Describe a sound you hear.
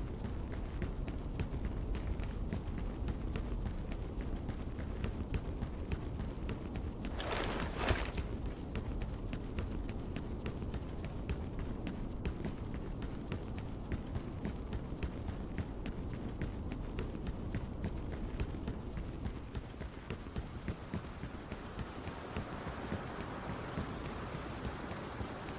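Footsteps run steadily on hard ground.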